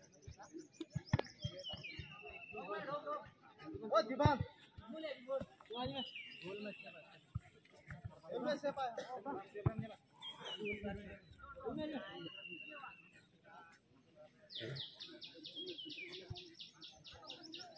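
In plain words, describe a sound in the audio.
A crowd of boys and young men chatter and call out outdoors.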